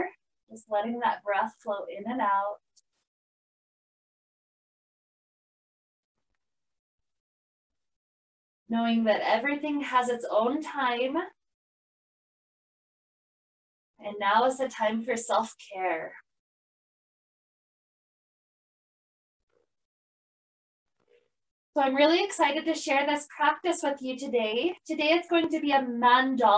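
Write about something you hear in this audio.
A woman speaks calmly and softly through a microphone, pausing between phrases.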